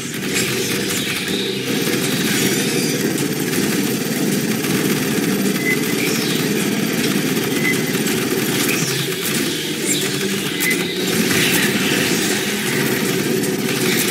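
A heavy gun fires in rapid, continuous bursts.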